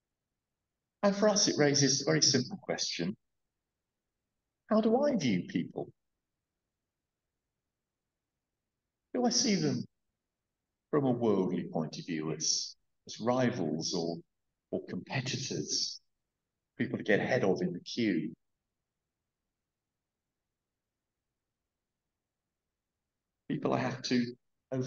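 A middle-aged man speaks slowly and calmly through a headset microphone, with long pauses, heard over an online call.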